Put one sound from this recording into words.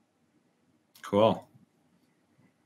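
Another young man speaks briefly over an online call.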